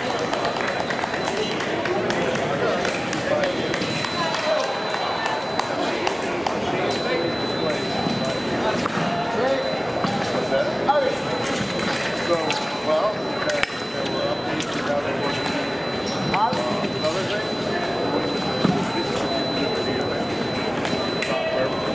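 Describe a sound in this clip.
Many voices murmur and echo in a large hall.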